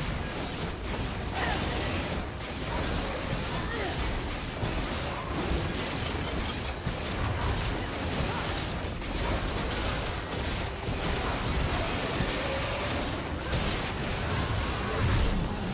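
Game spell and weapon effects crackle and clash in a fast, busy fight.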